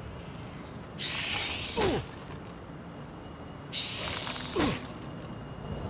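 A giant spider strikes with a heavy hit.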